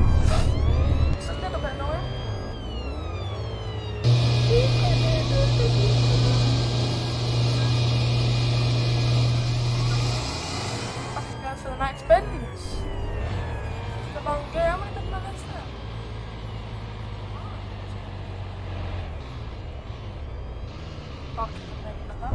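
A truck engine rumbles with a steady, low hum.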